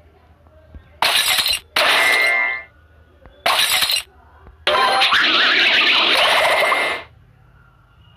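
Game pieces burst with loud crackling blasts.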